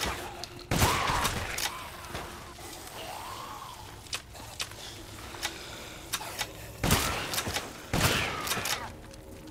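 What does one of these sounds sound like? A shotgun fires loudly several times.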